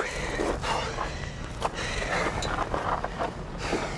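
A man speaks with animation nearby.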